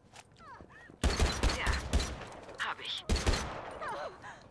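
A gun fires rapid shots in bursts.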